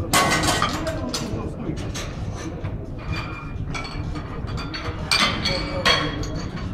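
People murmur and talk nearby in an echoing hall.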